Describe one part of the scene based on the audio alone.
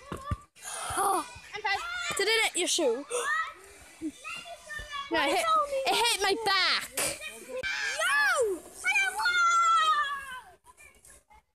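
A young girl shouts and squeals excitedly close by.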